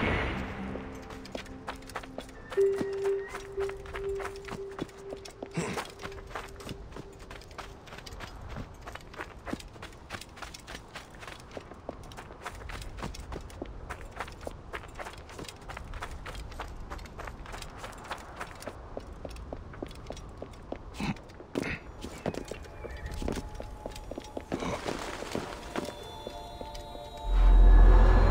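Footsteps crunch quickly over sand and gravel.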